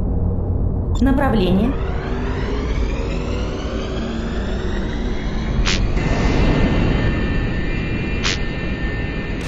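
A spaceship engine roars and rises in pitch as it speeds up.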